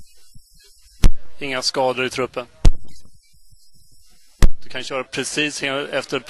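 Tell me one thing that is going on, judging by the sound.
A man asks questions close to a microphone.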